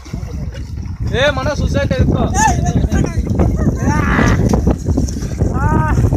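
Water splashes loudly in the sea.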